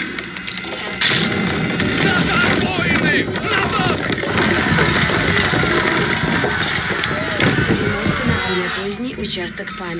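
Heavy logs crash and tumble down with a loud rumble.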